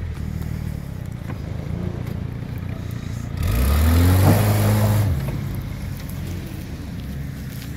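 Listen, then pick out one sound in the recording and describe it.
An off-road vehicle's engine revs and labours up a dirt slope.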